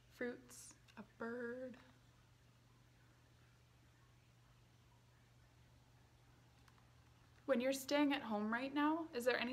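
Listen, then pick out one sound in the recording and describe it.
A young woman reads out calmly, close to a microphone.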